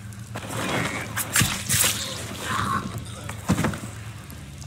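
A knife stabs into a body with wet thuds.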